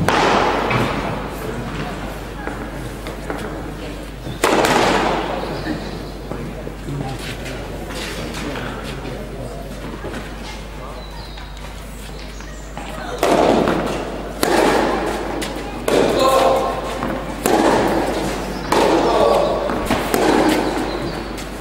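A tennis ball is struck back and forth with sharp pops that echo in a large hall.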